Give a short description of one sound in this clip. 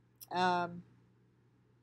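An older woman briefly says a short word close to a computer microphone.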